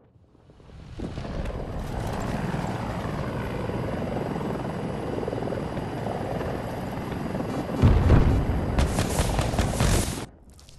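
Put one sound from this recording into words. A helicopter's rotor roars loudly and steadily.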